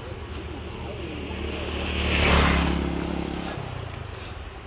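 A motorbike passes by on the road.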